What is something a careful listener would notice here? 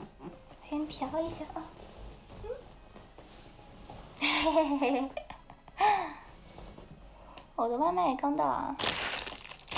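A young woman giggles and squeals close by.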